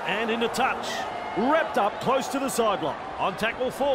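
A referee blows a whistle in short blasts.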